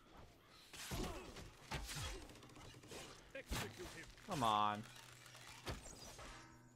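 A bow twangs sharply as arrows are loosed.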